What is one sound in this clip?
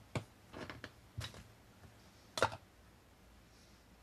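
A small plastic figure clicks onto a plastic pot.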